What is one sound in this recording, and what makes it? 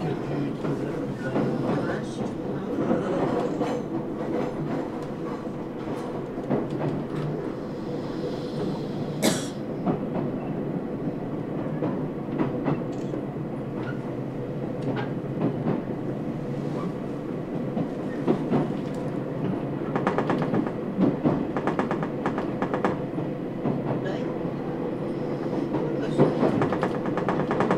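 A train rumbles steadily along the track, heard from inside a carriage.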